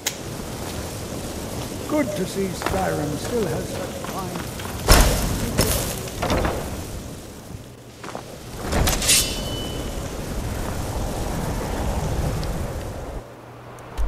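Magic crackles and hums softly in a pair of hands.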